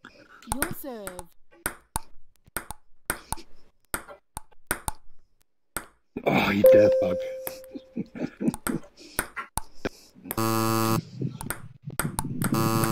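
A ping pong ball clicks sharply back and forth against paddles and a table.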